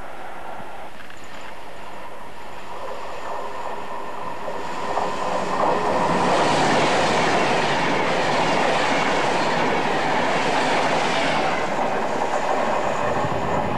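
A high-speed train roars past close by and fades away.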